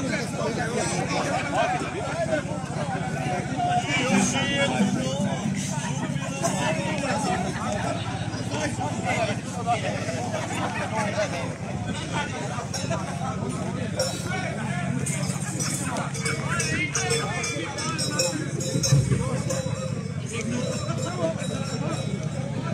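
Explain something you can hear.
A folk band with an accordion and brass plays lively music outdoors.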